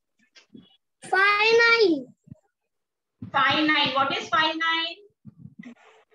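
A young child speaks with animation over an online call.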